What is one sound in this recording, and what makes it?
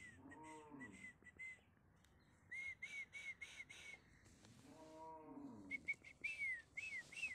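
A donkey brays loudly nearby with squeaky wheezes.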